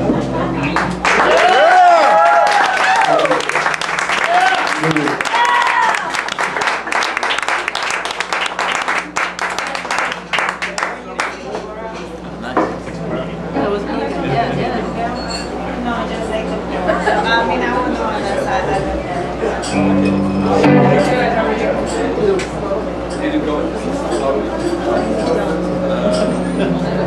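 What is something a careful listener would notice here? Drums and cymbals keep a busy beat.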